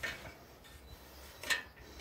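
Metal parts of a bicycle click and rattle as a hand handles them.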